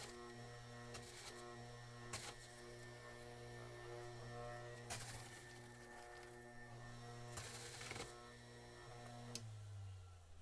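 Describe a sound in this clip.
A juicer motor hums steadily.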